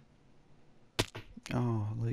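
A block breaks with a short crunch.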